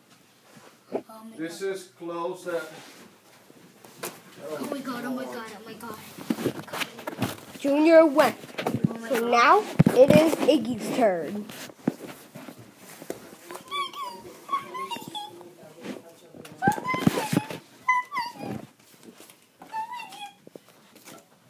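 A young child talks and squeals excitedly close by.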